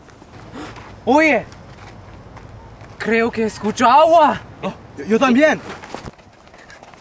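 A young man talks with animation outdoors.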